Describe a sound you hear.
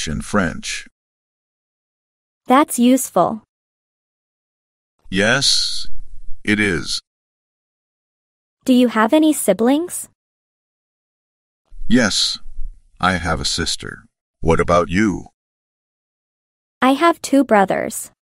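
A young man speaks calmly and clearly, close up.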